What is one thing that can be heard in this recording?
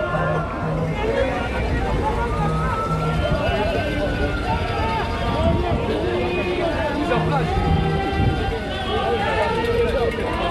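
Men talk excitedly close by.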